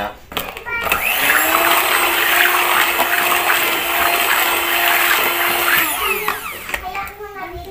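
An electric hand mixer whirs, beating batter in a metal bowl.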